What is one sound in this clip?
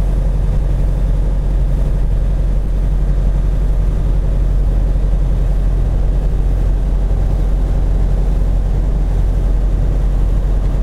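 A truck engine rumbles low and steady from inside the cab.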